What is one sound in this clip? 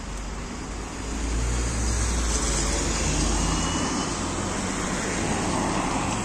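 A bus drives past close by with a loud engine rumble.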